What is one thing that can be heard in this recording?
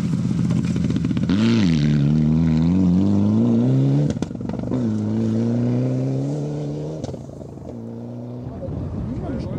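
A rally car engine revs hard as the car speeds past and drives away.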